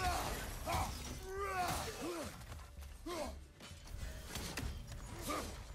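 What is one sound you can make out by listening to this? Heavy weapon blows land with sharp thuds.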